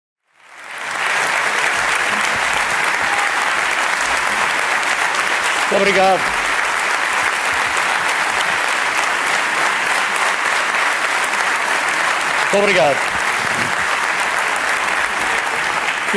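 A large crowd applauds loudly in a big hall.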